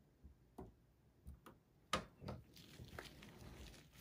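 Plastic parts click and snap as gloved hands work inside a computer case.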